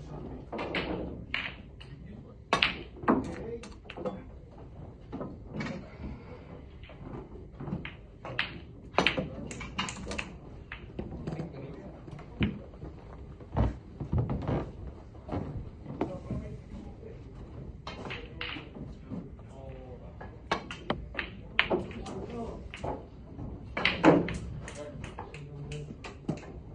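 Snooker balls knock together with hard clicks.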